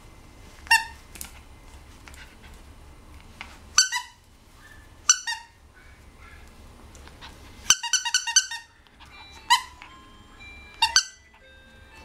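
A rubber toy squeaks in short, sharp bursts.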